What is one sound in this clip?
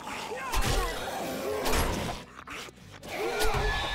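A knife strikes flesh with wet thuds.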